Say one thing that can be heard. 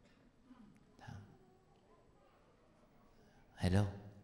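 A man speaks calmly into a microphone in a large, echoing hall.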